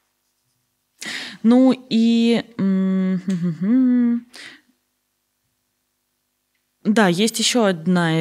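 A young woman speaks close to a microphone, drawing out her words.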